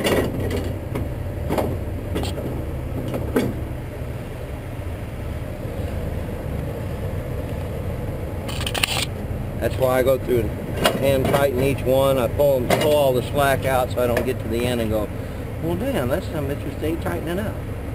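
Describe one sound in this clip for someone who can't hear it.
A fabric strap slaps and rattles against a metal trailer rail.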